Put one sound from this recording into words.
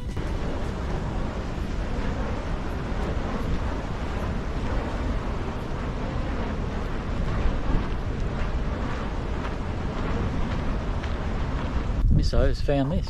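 Wind rushes loudly outdoors.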